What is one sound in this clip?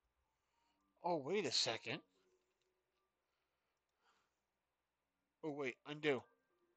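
A young man speaks in short, animated bursts close to a microphone.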